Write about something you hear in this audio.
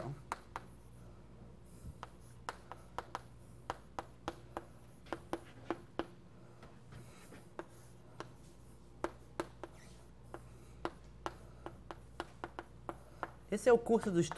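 Chalk taps and scratches on a blackboard.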